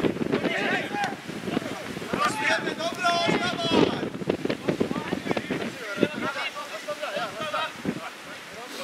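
Young men shout and call to each other across an open football pitch.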